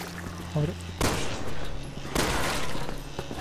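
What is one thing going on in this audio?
A gun fires sharp shots close by.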